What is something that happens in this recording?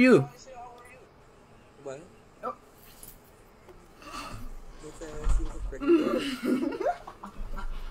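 A young woman speaks and laughs through an online call.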